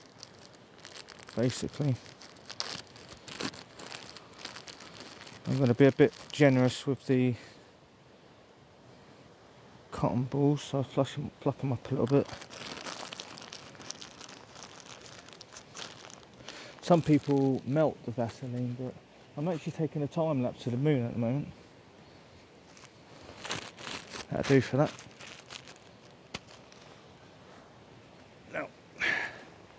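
Plastic bags rustle and crinkle as they are handled.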